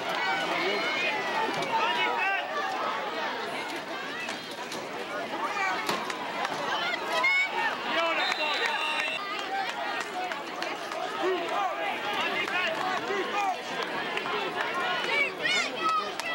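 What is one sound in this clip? A crowd of spectators chatters and cheers nearby outdoors.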